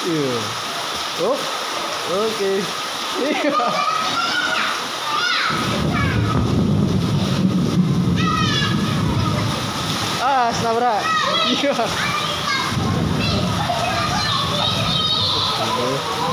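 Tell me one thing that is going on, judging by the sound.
Children shout and squeal playfully nearby.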